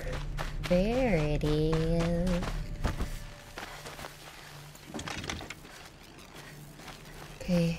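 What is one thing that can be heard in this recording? A young woman talks quietly into a microphone.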